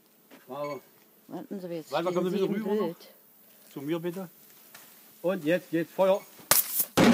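A man talks nearby.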